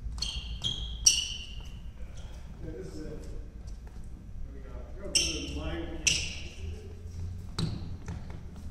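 Shuttlecocks are struck with rackets in a large echoing hall.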